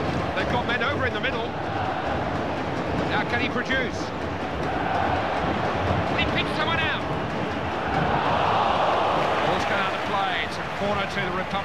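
A stadium crowd roars and swells.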